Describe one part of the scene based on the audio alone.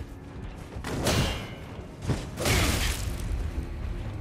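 A heavy blade whooshes through the air.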